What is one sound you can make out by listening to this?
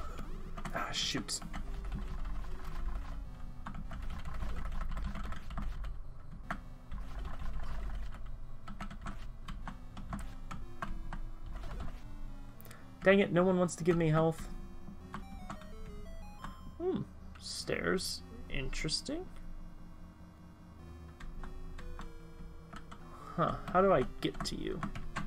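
Short electronic game sound effects beep and blip.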